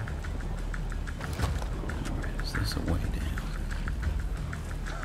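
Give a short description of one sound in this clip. Quick footsteps patter on wet ground.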